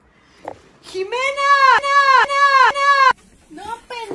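A young woman screams loudly.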